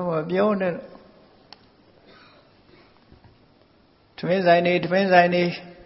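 An elderly man chants slowly in a drawn-out voice, close to a microphone.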